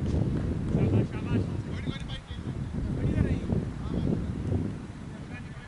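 Men talk to each other outdoors at a distance.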